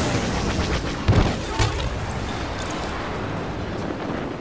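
A large explosion booms with a deep roar.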